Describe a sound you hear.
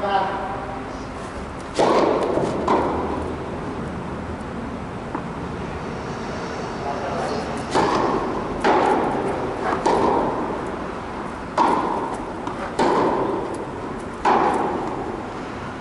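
Tennis balls bounce on the court.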